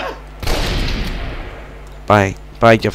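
A gunshot rings out and echoes in a wooden room.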